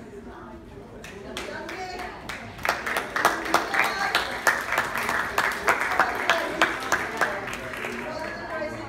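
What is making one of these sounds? A group of people clap their hands in rhythm.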